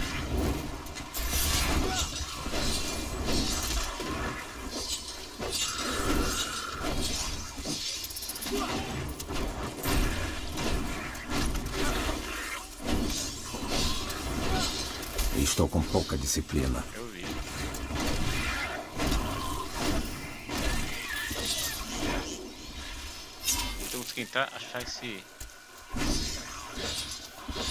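Spells crackle and blast in a fast fight.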